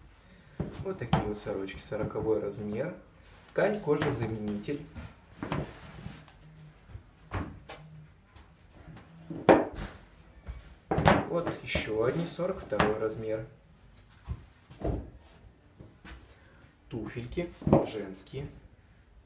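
Shoes knock softly on a hard surface.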